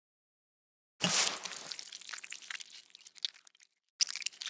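A ladle scrapes against a pot.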